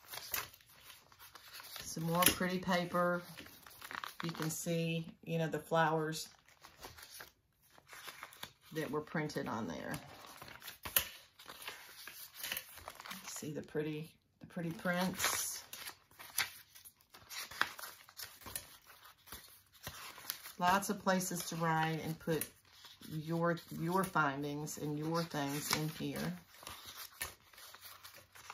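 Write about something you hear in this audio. Paper pages rustle and flip as they are turned by hand.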